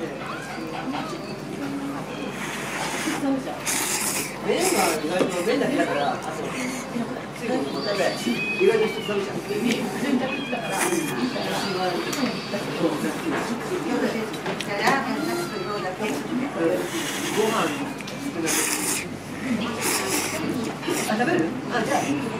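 Chopsticks lift noodles out of broth with soft wet splashes.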